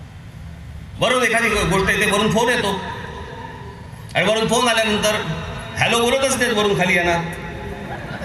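A man speaks forcefully through loudspeakers, echoing outdoors.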